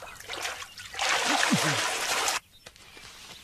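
Water splashes loudly as a person plunges into it.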